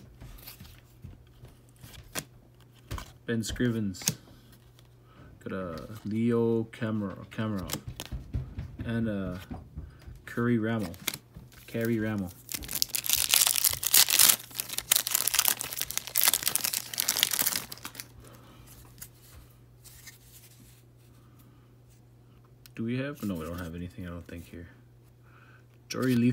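Trading cards slide against each other as they are shuffled by hand.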